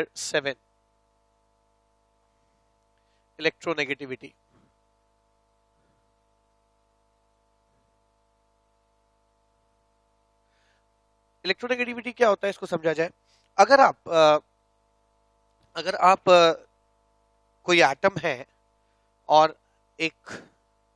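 A man speaks calmly through a headset microphone, in short bursts.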